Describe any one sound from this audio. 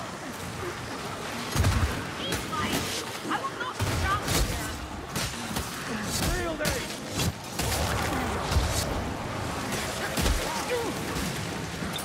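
Creatures snarl and shriek in pain.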